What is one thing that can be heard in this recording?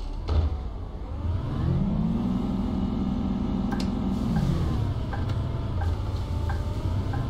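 A bus engine revs up as the bus pulls away, then settles.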